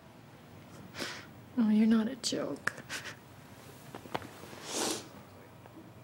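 A woman speaks with emotion.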